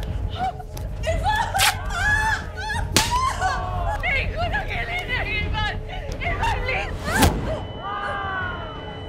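A young woman screams and cries out in distress.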